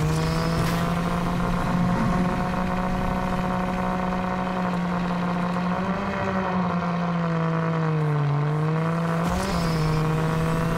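A buggy's engine drones steadily at high revs, its pitch dipping and rising.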